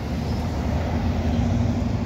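A pickup truck drives past.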